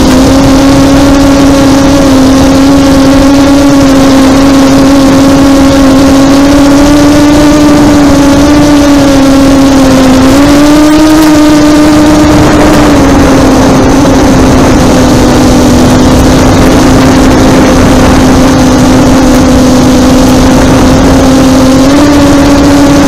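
Small drone motors whine loudly and steadily, the pitch shifting slightly as the drone speeds up and turns.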